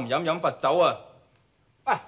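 A young man speaks sharply and with force.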